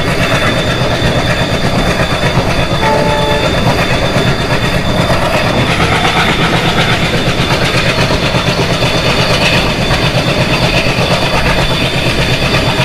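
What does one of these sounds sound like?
A diesel locomotive engine rumbles and throbs loudly close by.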